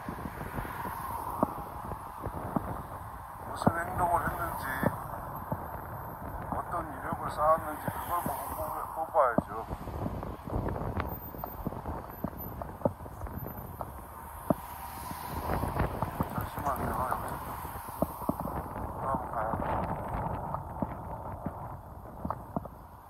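Cars drive past close by on a road outdoors.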